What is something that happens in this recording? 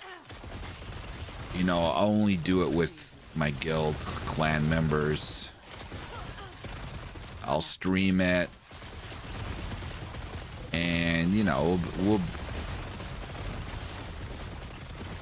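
Magic blasts crackle and boom in a video game.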